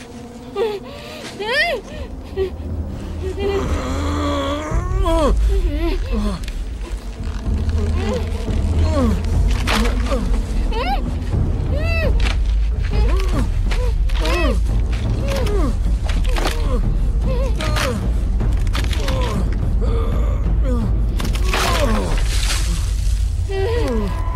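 A gagged woman whimpers, muffled.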